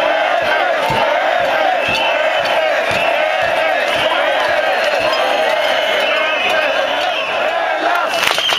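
Crowd members clap and bang in rhythm.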